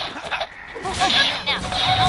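A bright energy burst explodes with a loud crack.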